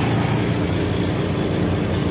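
A backhoe loader's engine drones as it passes close by outside.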